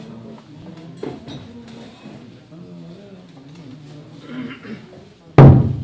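Several drumsticks beat on a large drum.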